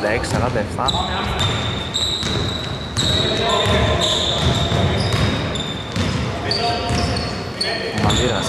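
Sneakers squeak sharply on the gym floor.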